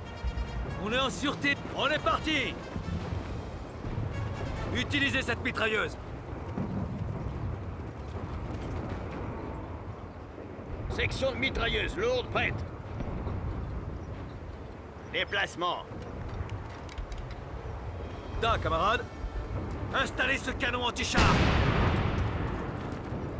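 Gunfire and explosions rumble in a battle.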